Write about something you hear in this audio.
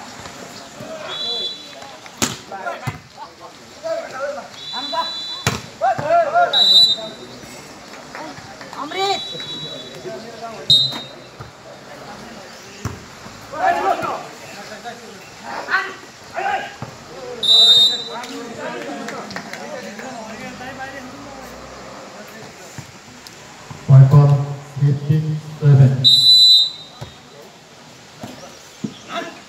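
Young men shout and call out outdoors during a ball game.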